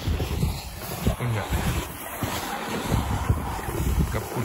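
A sled scrapes and hisses over packed snow.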